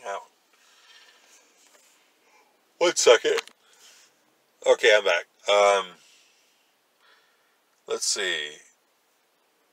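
A man speaks in short bursts close by, in a calm, weary voice.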